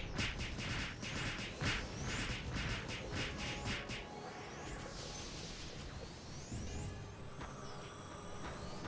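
Shimmering chimes of game spells ring out.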